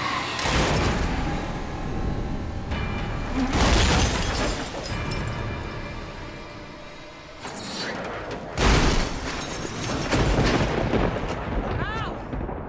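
A car crashes and rolls with loud metal crunches.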